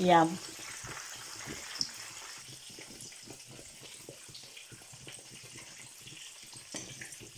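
Water boils and bubbles steadily in a pot.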